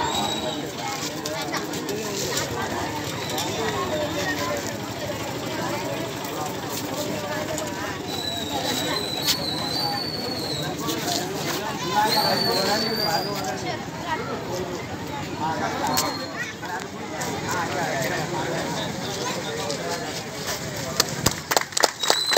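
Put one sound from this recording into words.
A crowd of men and women chatters outdoors.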